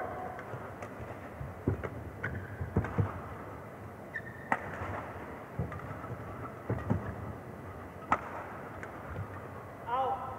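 Rackets strike a shuttlecock in a fast rally, with sharp pops.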